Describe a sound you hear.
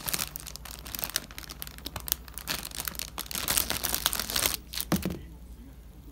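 Crusty bread crackles as fingers squeeze it.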